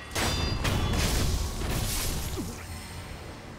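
Heavy blows of a close fight thud loudly.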